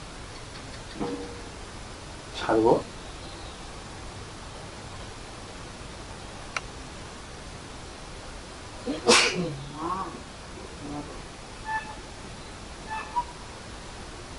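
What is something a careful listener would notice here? A man speaks calmly and slowly, close to a microphone, with long pauses.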